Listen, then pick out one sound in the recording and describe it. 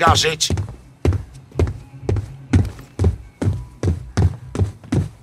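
Footsteps thud heavily on wooden stairs at a steady pace.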